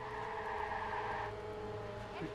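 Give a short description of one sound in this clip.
Car tyres screech as the car skids.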